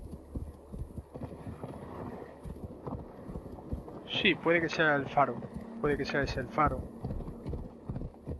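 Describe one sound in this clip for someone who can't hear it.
Horse hooves thud rhythmically at a gallop.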